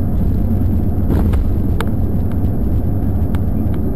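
A concrete barrier block scrapes and thuds onto the road.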